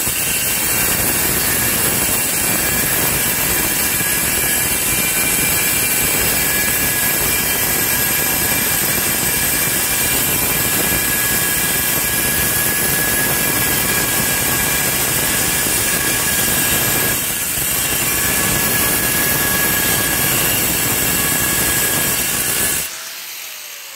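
An angle grinder cuts through stone with a loud, steady whine.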